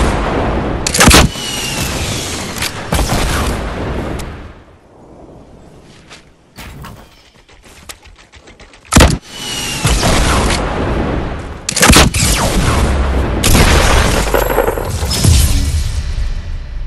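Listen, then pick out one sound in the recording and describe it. Gunshots crack loudly several times.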